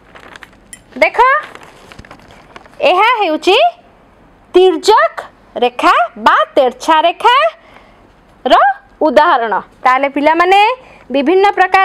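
A young woman speaks clearly and with animation, close by.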